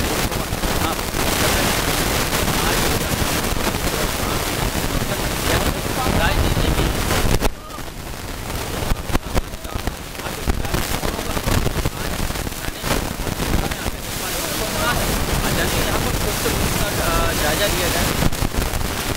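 A young man talks steadily into a close microphone, outdoors with noise in the background.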